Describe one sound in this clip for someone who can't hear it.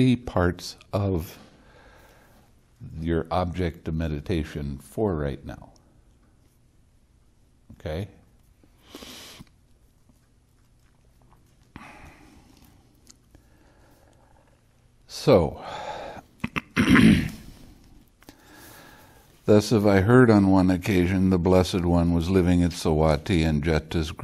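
An elderly man speaks calmly and slowly, close by, with long pauses.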